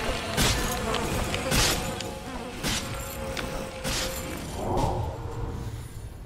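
Spell blasts and impacts crash in a fantasy battle game.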